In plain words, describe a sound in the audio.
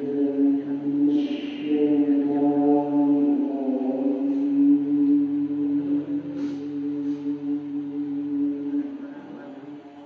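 A man chants a long, drawn-out melody into a microphone.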